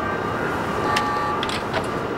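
A button clicks.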